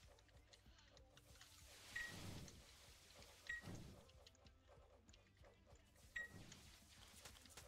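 Game spell effects whoosh and burst repeatedly.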